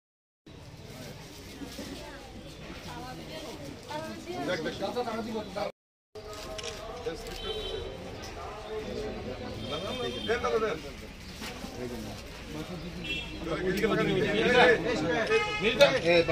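Men talk and murmur in a small crowd nearby.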